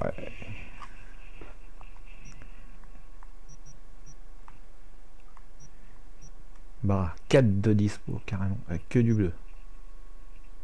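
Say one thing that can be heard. Soft electronic clicks and blips sound now and then.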